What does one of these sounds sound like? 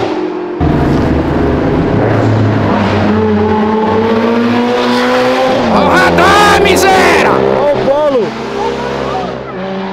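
A sports car engine roars loudly as the car drives by.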